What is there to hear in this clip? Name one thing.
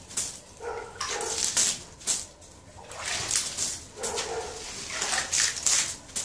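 Water splashes as it is poured from a bucket onto a pile of dry mix.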